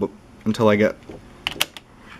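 A typewriter key clicks.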